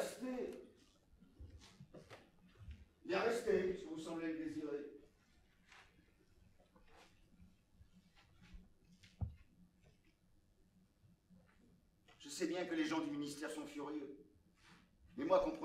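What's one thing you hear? A middle-aged man speaks with feeling, pausing between phrases.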